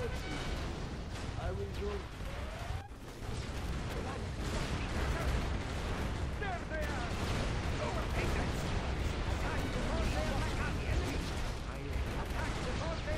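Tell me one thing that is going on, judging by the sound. Gunfire rattles steadily.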